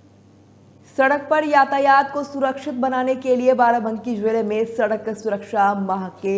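A woman reads out the news clearly into a microphone.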